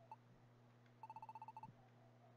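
Rapid high blips tick.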